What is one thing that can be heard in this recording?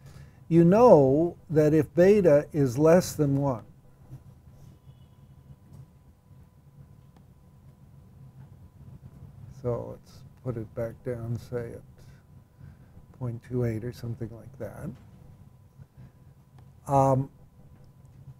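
An elderly man speaks calmly and haltingly into a close microphone, with long pauses.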